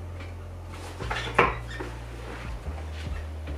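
Fabric rustles as a dress is pulled on.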